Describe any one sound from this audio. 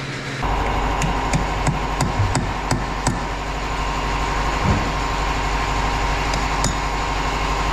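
A hammer strikes metal with sharp clanks.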